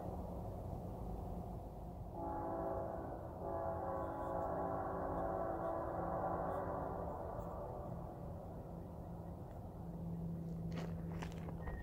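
A train rumbles along the tracks in the distance.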